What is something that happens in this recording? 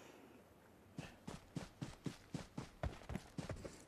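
Footsteps pad quickly and evenly over grass.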